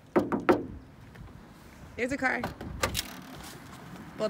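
A car trunk latch clicks and the lid swings open.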